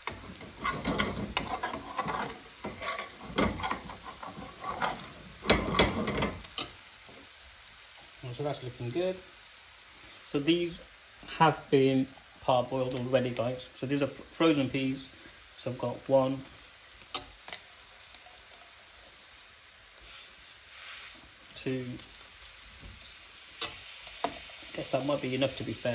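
A metal spoon scrapes and stirs in a pan.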